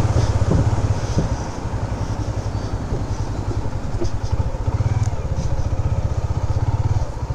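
A motorcycle engine chugs steadily at low speed, close by.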